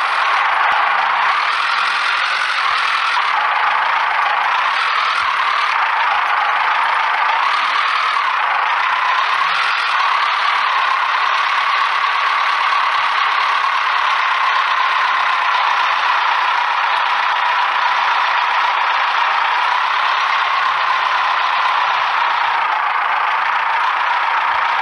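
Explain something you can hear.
A truck engine roars steadily, its pitch rising and falling with the throttle.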